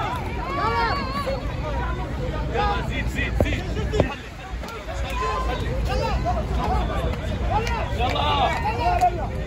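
A crowd of men and women shout and talk outdoors.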